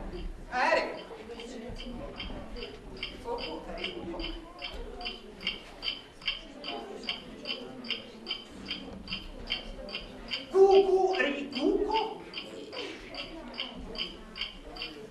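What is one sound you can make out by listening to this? An alarm clock rings with rapid, steady beeps.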